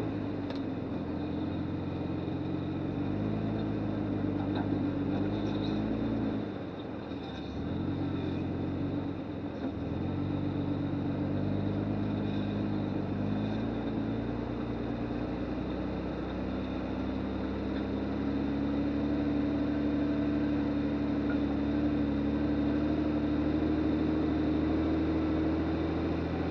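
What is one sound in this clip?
An off-road vehicle's engine rumbles steadily at low speed, rising and falling slightly.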